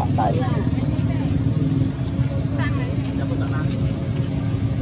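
A baby monkey squeaks and whimpers softly up close.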